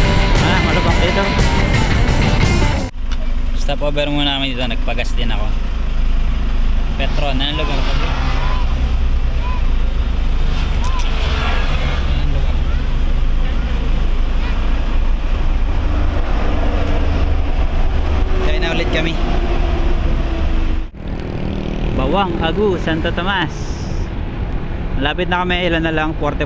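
A motorcycle engine hums while riding.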